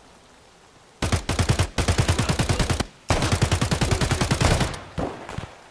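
A rifle fires in rapid automatic bursts, echoing outdoors.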